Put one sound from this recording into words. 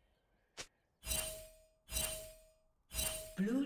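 Short game chimes ring out one after another.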